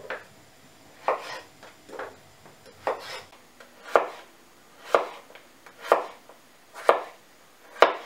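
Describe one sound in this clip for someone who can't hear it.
A knife chops potatoes on a wooden board with steady thuds.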